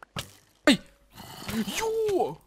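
Zombies groan nearby.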